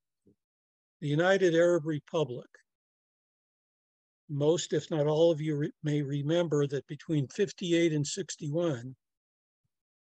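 An elderly man speaks calmly through a microphone over an online call.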